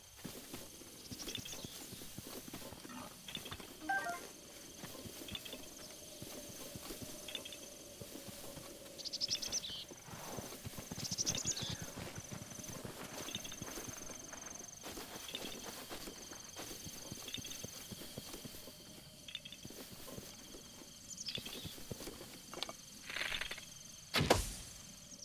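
Footsteps run quickly through tall grass.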